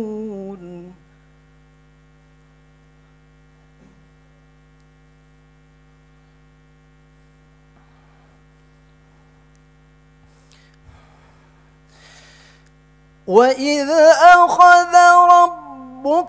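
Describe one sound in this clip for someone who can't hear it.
A young man chants melodically into a microphone, with long held notes.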